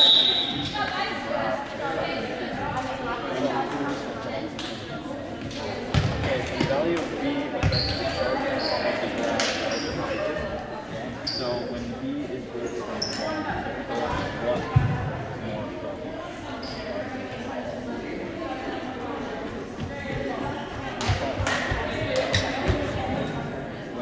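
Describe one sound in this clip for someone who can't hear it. Squeaky sneakers squeal on the gym floor.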